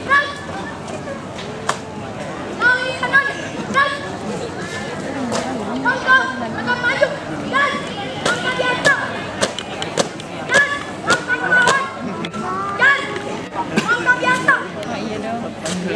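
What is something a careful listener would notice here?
A young woman shouts marching commands loudly outdoors.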